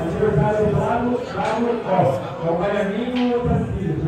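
Billiard balls knock together.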